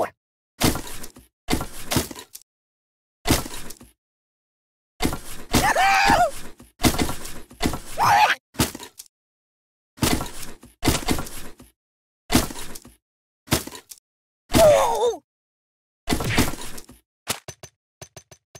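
Objects thud and pop as they hit a toy figure in bursts.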